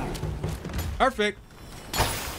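A young man exclaims with excitement close to a microphone.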